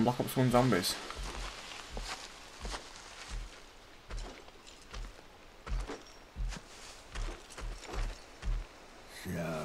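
Footsteps thud steadily on soft ground.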